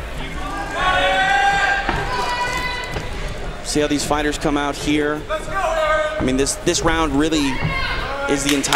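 A crowd of spectators shouts and cheers in a large hall.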